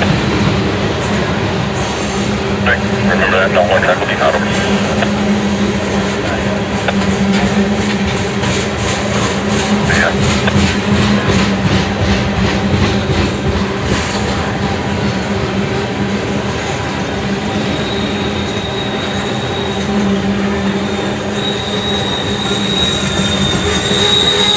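A freight train of tank cars rolls past close by.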